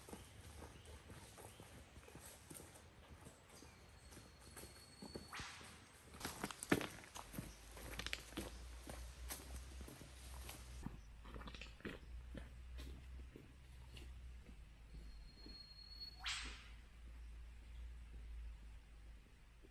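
Footsteps crunch on a dirt track.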